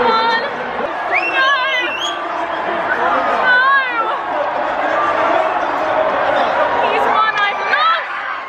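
A young woman shouts and cheers loudly.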